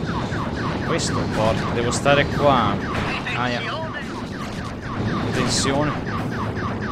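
Explosions burst now and then.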